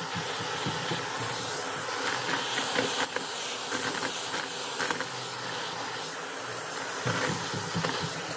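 A vacuum cleaner roars steadily close by.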